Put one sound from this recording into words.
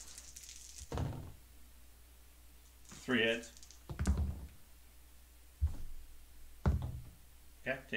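Small game pieces tap down on a tabletop board.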